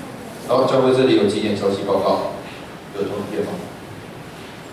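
A young man speaks through a microphone over loudspeakers in a large room.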